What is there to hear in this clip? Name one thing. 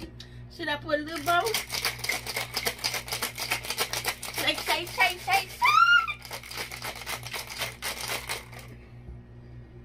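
Ice rattles hard inside a metal cocktail shaker being shaken.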